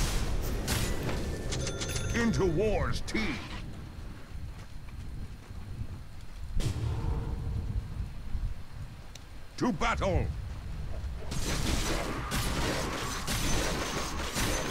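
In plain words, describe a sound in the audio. Magic bursts crackle in a fight.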